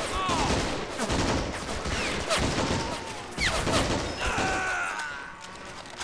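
Rifle shots and gunfire crack in bursts.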